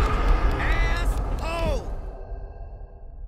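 A deep booming game sound effect rings out and slowly fades away.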